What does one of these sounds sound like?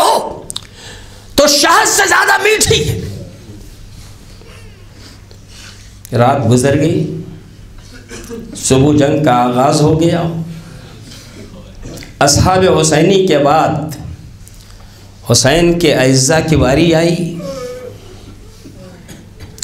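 A middle-aged man speaks with feeling into a microphone, in short bursts with pauses, in a reverberant hall.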